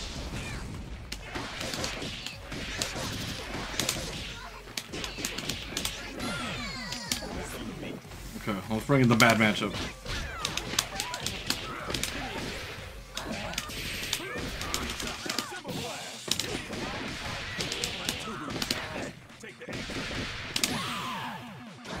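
Punches and kicks land with sharp, rapid smacks.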